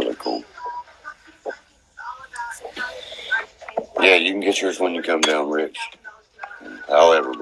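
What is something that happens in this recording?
A young man talks casually and close to a phone microphone.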